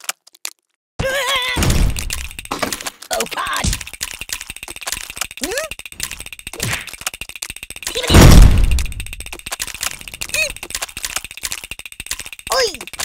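Cartoon piranhas chomp and bite rapidly.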